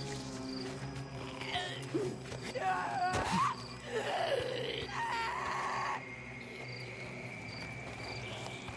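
Footsteps crunch softly on dirt and gravel.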